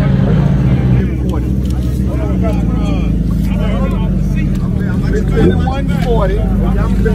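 Several men talk with animation close by.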